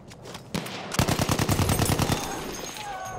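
A machine gun fires a rapid, loud burst.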